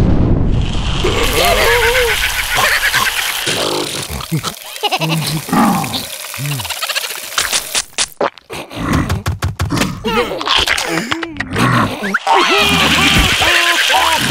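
A second cartoon creature voice babbles and wails.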